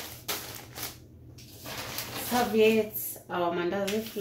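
A soft package is set down on a metal counter.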